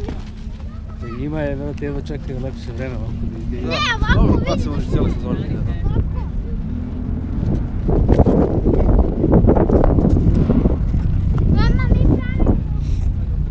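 A young child chatters in a high voice close by.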